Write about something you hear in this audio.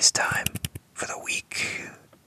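A young man whispers softly close to a microphone.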